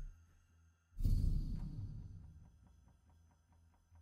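A deep whooshing swell sounds as a new phase begins and slowly fades.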